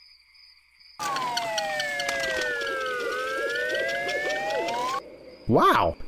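A cartoon figure zips down a cable with a sliding whistle.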